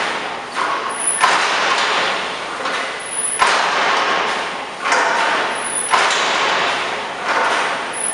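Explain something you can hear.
A metal gate swings and clangs against its frame.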